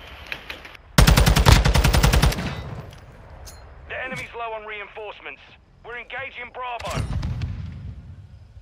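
An automatic rifle fires rapid bursts close by.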